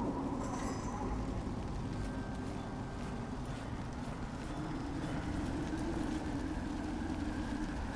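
Footsteps scuff on a stone floor.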